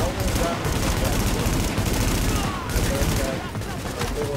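A rifle fires.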